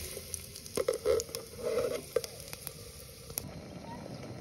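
Hot oil sizzles in a pot.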